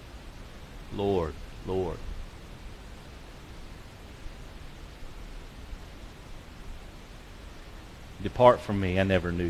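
A man speaks slowly through a microphone in a large echoing hall, with long pauses.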